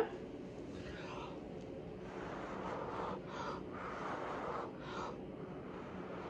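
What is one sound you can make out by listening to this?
A person blows air in short, soft puffs close by.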